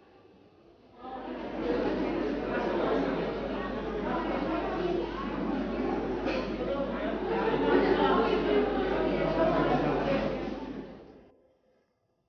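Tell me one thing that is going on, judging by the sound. A crowd murmurs and bustles close by.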